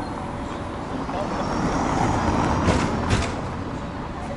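A car drives past close by.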